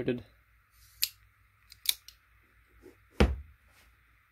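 A folding knife clicks sharply as its blade snaps open and shut.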